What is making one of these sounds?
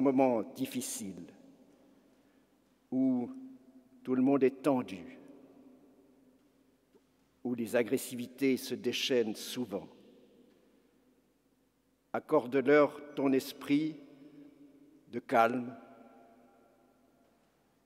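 An elderly man speaks calmly and slowly through a microphone, his voice echoing in a large hall.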